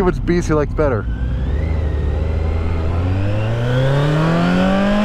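A motorcycle engine revs up steadily, rising in pitch as it accelerates.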